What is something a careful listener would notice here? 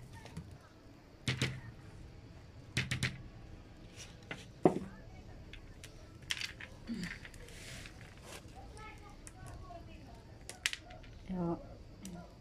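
Hands rustle and crumble dry potting soil and clay pebbles.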